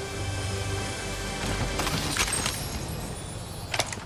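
A game chest opens with a shimmering chime.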